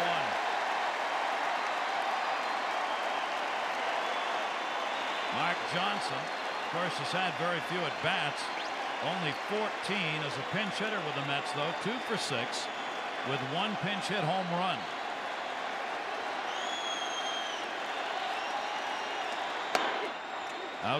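A large crowd murmurs and cheers in a stadium.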